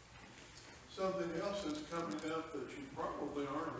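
A man speaks clearly into a microphone, reading out.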